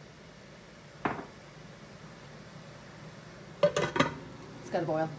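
A metal lid clanks onto a pot.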